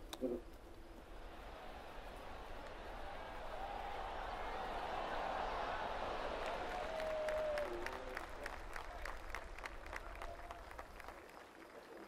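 A crowd cheers and applauds, swelling and then fading.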